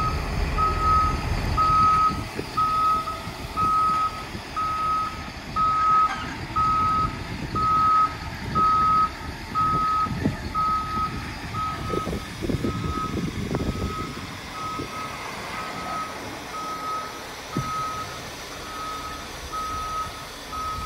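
A diesel articulated dump truck engine rumbles as it moves.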